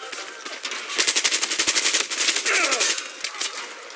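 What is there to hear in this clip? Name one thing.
An automatic rifle fires rapid bursts of shots close by.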